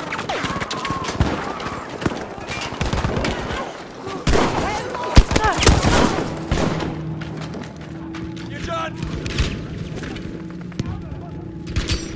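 Gunshots crack in rapid bursts nearby.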